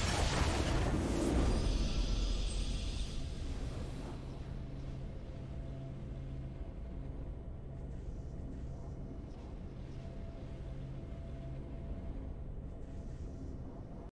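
A triumphant fanfare plays with a soft steady tone.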